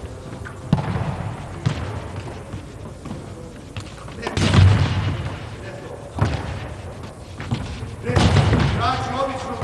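A ball thuds on a hard floor in a large echoing hall.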